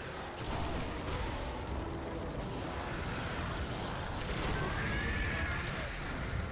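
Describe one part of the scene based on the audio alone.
Rapid gunfire rings out in bursts.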